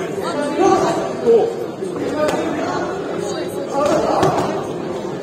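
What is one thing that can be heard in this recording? Punches thud against gloves and bodies.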